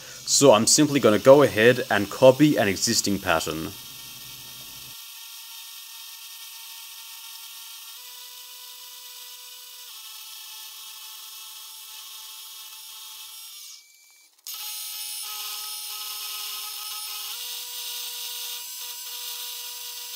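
A milling machine whirs steadily as its cutter grinds into metal.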